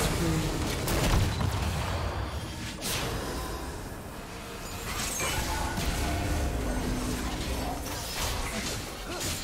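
Magic spell effects whoosh and crackle in quick bursts.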